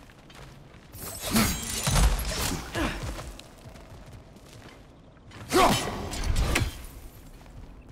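A metal axe strikes stone with a loud clang.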